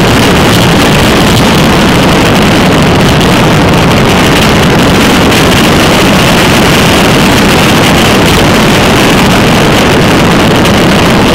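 Wind rushes and buffets loudly past a fast-moving rider outdoors.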